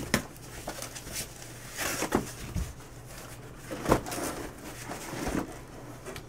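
Cardboard boxes rustle and scrape as they are handled.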